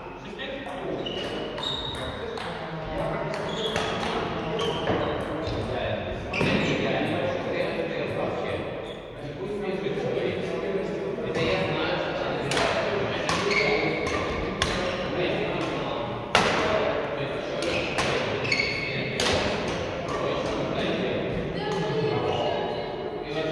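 Shoes squeak on a sports floor.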